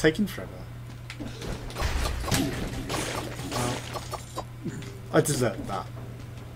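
Quick slashing and hitting sound effects ring out in a game.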